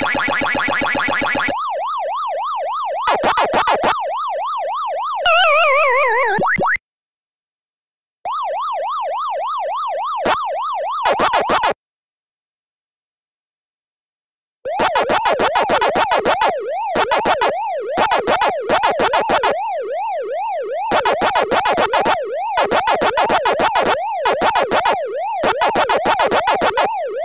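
Retro arcade game sound effects chirp and warble rapidly.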